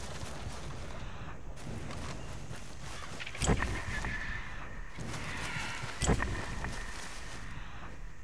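Footsteps rustle through dense leafy undergrowth.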